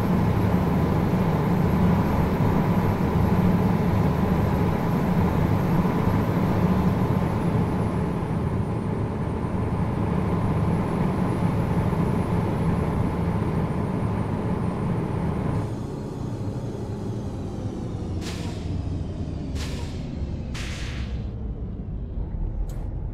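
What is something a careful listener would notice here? A truck engine rumbles steadily while driving along a road.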